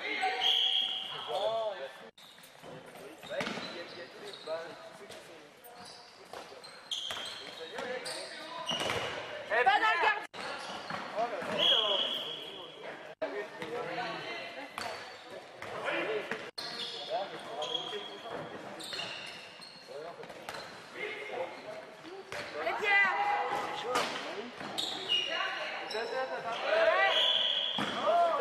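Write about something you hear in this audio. Young men shout to one another across a large echoing hall.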